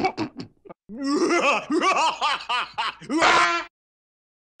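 A cartoon creature laughs loudly.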